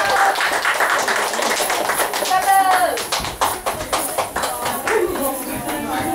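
Coins on belly-dance belts jingle as dancers move.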